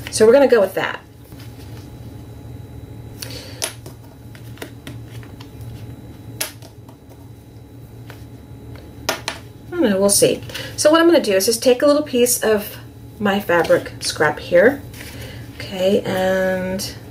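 Paper and ribbon rustle softly as they are handled.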